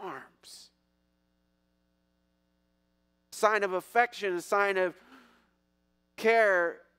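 A middle-aged man speaks with animation through a microphone in a large hall.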